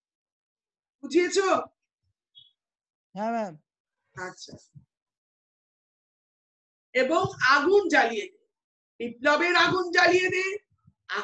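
A young woman speaks in short phrases through an online call.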